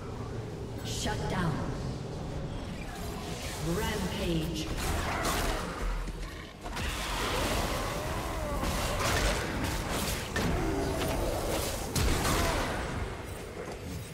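Game combat sounds of spells and strikes crackle and boom.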